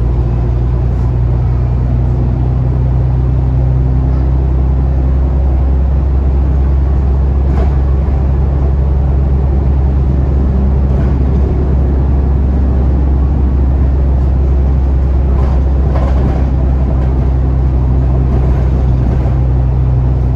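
The bus interior rattles and clicks over the road.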